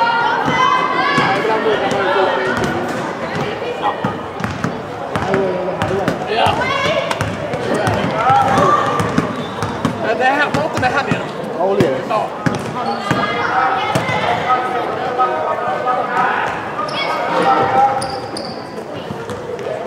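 Young women shout and call to each other across an echoing sports hall.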